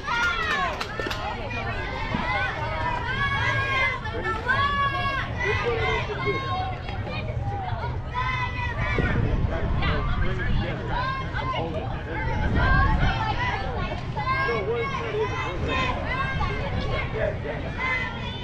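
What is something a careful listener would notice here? Young girls chant and cheer loudly outdoors.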